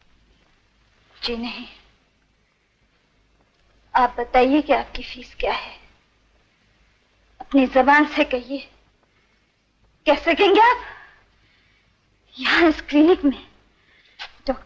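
A woman answers quietly, close by.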